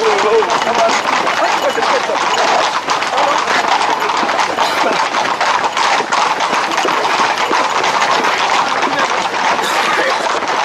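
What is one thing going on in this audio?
Horses' hooves clatter on a hard road.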